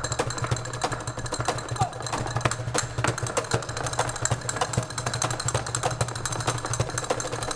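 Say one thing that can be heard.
Castanets click rapidly.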